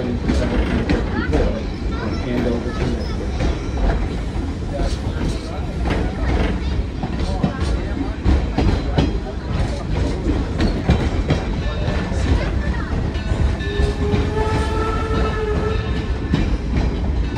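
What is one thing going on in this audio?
A metal chain rattles and clinks against the side.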